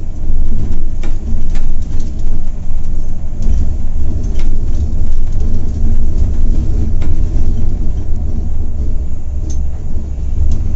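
The coach rattles and thumps over a rough road.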